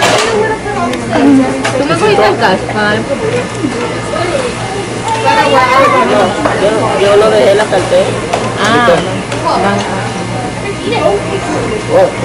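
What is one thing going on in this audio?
Indistinct chatter of diners murmurs in the background.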